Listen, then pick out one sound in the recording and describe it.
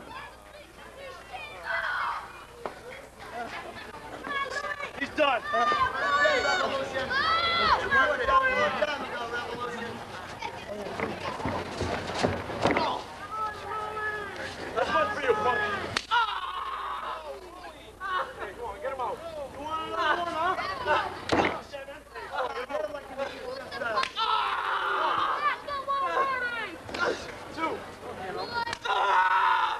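A man shouts with animation, heard from nearby outdoors.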